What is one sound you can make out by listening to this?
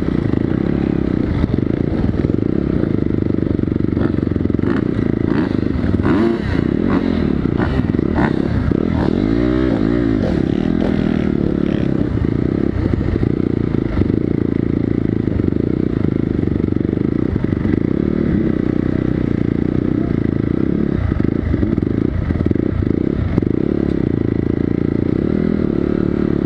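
A dirt bike engine idles and revs loudly close by.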